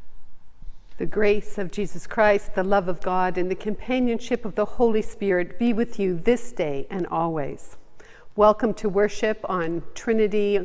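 A middle-aged woman speaks with animation into a microphone in an echoing room.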